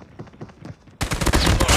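A rifle fires a rapid, loud burst.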